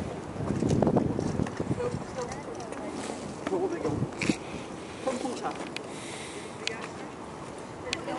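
Wind gusts across open water outdoors.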